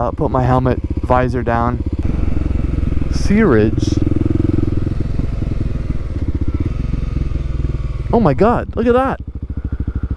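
A motorcycle engine revs up sharply and drops back several times.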